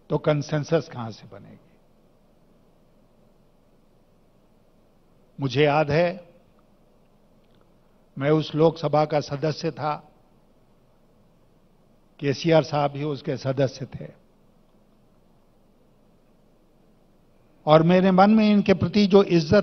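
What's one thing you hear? An elderly man speaks with emphasis through a microphone, in bursts separated by pauses.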